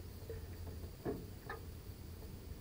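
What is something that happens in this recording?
A large fish splashes in shallow water.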